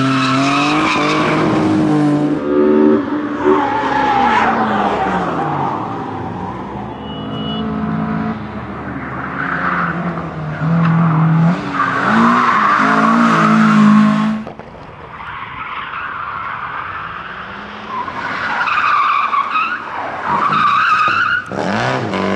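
Tyres squeal on tarmac as cars slide through turns.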